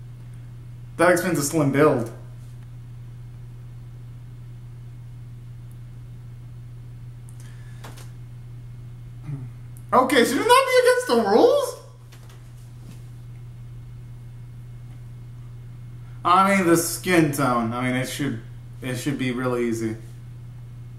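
A young man sings out loudly in short bursts, close by.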